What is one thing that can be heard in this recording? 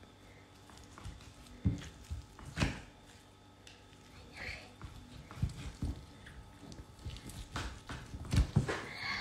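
A knife taps against a wooden cutting board.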